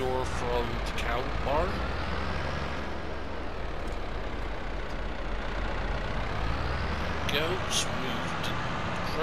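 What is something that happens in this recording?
Farm machinery rattles and clanks behind a tractor.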